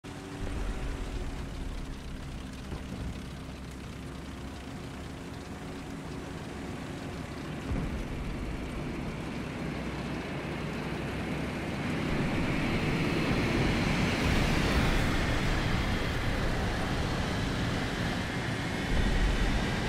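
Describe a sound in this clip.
Tank tracks clatter and squeal over sand.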